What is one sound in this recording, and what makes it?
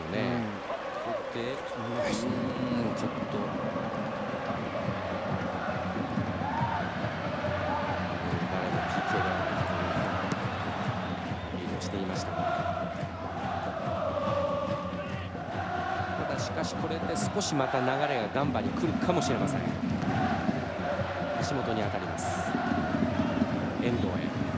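A large stadium crowd chants and cheers loudly.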